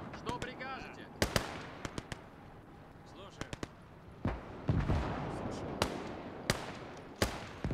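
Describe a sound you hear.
Gunshots crack in sharp bursts across a battlefield.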